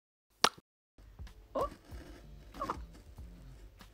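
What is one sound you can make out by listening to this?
A pen taps on a cardboard box.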